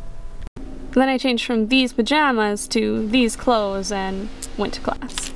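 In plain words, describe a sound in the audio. A young woman speaks close by in a lively, sing-song voice.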